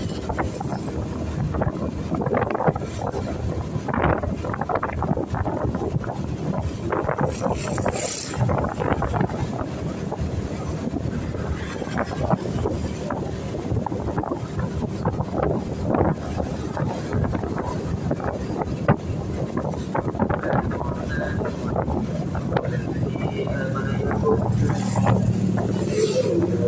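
Wind rushes past, buffeting loudly.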